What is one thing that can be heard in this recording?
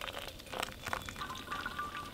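Hot water pours into a metal cup.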